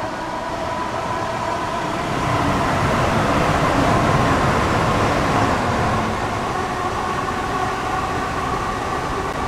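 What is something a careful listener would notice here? A train engine drones steadily.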